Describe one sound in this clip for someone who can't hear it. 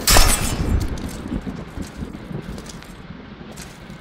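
A man grunts and groans as he falls.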